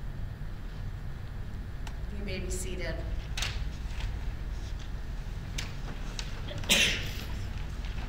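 Book pages rustle and turn.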